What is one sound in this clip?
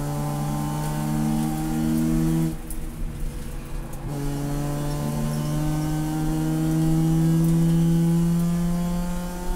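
A race car engine roars loudly from close by, drops off briefly, then revs up again.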